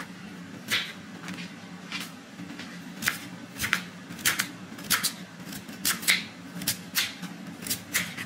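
A knife slices through a sweet potato onto a wooden cutting board.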